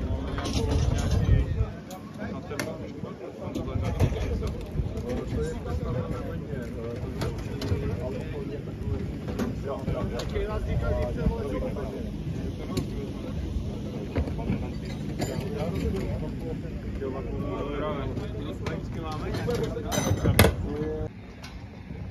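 Several men talk nearby in a calm, busy murmur outdoors.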